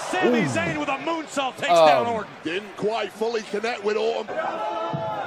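A man shouts and exclaims excitedly close by.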